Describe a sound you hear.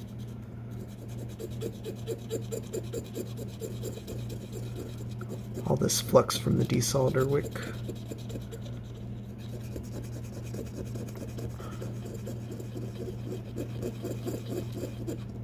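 A cotton swab scrubs softly against a circuit board.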